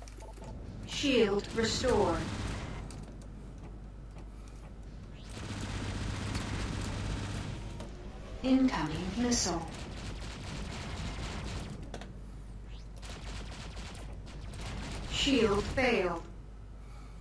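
Laser cannons fire in bursts of sweeping electronic zaps.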